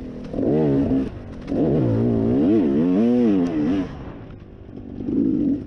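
A dirt bike engine revs up and down in loud bursts close by.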